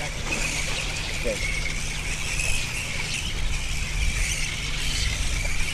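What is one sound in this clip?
A large flock of bats screeches and chatters constantly overhead.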